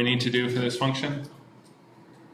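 A man speaks calmly to a room, his voice echoing slightly.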